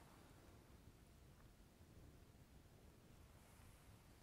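A man puffs on a cigar.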